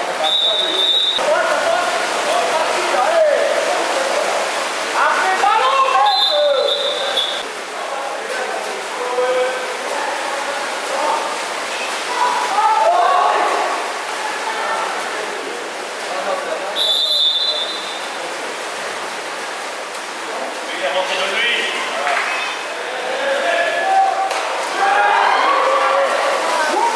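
Men shout to each other across an echoing pool.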